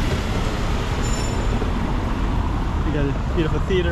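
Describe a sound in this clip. A car drives slowly along the street.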